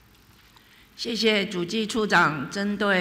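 A woman speaks calmly into a microphone, heard through a loudspeaker system.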